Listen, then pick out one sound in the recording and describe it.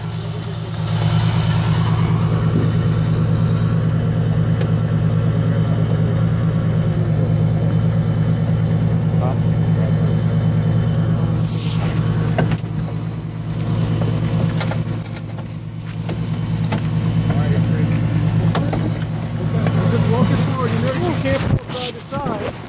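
A hydraulic rescue tool drones steadily close by.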